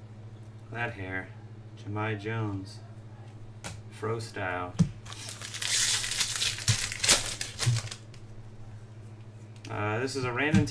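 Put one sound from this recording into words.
Trading cards rustle and shuffle in hands.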